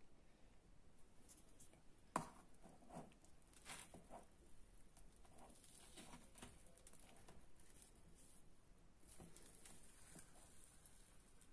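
Plastic cling film crinkles and rustles close by.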